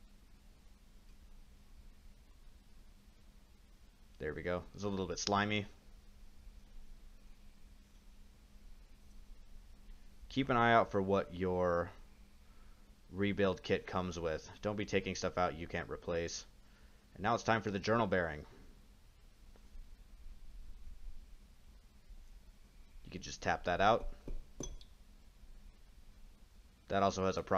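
Small metal parts click and clink against each other.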